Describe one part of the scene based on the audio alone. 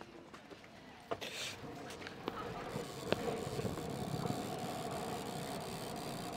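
Bicycle tyres roll over tarmac.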